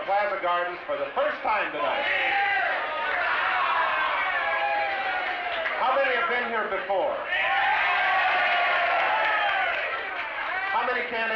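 A large crowd sings loudly together.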